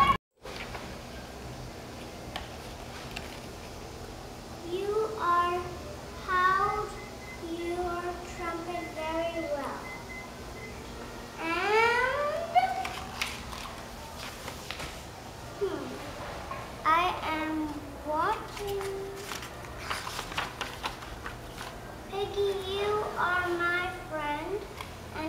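Book pages rustle as a young girl turns them.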